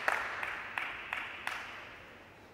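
A small plastic ball bounces several times in a row on a hard surface.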